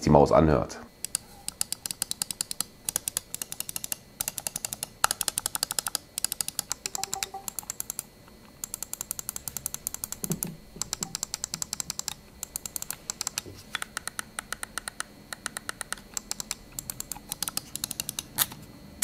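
A computer mouse clicks rapidly and repeatedly, close by.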